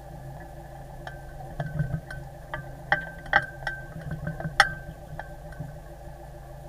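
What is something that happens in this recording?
Metal fittings clink and knock on a boat deck.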